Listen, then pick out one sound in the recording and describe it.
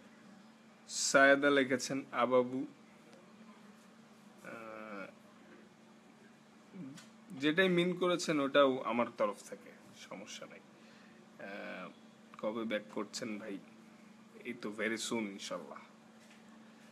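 A young man speaks casually and close up, with pauses.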